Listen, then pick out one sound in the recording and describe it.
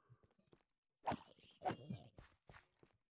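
A sword swings and strikes a creature with a sharp swoosh.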